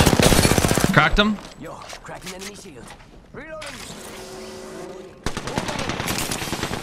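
Rapid gunfire rattles.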